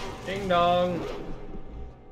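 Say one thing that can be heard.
A large beast lets out a loud, growling roar.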